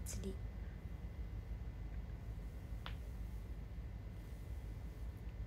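Fingers rustle through hair close by.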